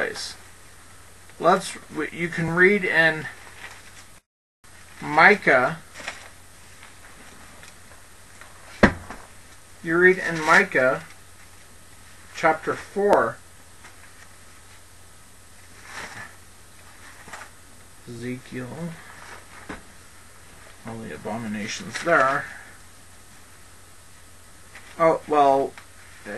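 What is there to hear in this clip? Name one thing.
A man speaks calmly and slowly, in short phrases with pauses, close to a headset microphone.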